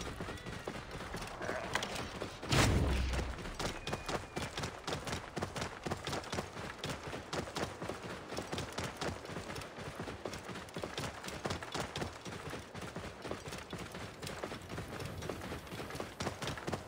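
A camel's feet thud quickly on sand as it runs.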